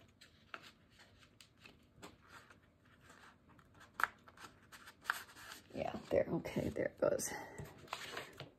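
Stiff paper rustles and slides as it is folded and handled.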